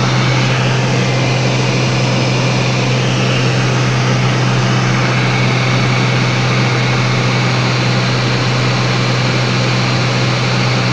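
A small propeller plane's engine drones loudly and steadily.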